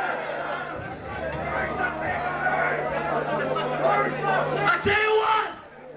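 A rock band plays loudly through amplifiers in an echoing hall.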